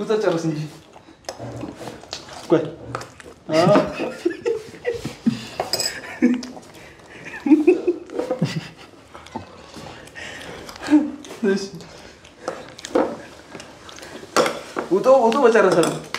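Young men talk and laugh nearby.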